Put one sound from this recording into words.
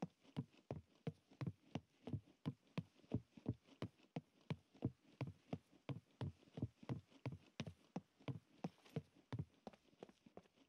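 Footsteps thud quickly on wooden planks.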